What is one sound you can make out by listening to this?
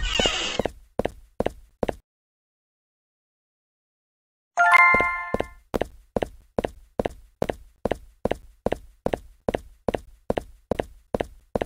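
Footsteps thud on the ground at a steady walking pace.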